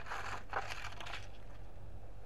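Loose soil rustles and crumbles in a plastic scoop.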